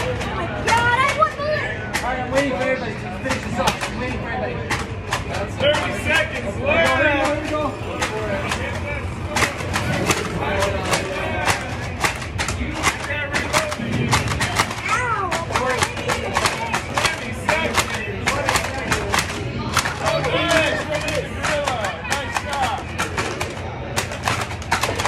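Toy foam blasters fire in rapid bursts of clicks and pops.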